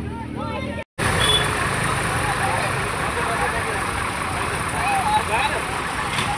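A crowd of young people shouts and chatters in the open air.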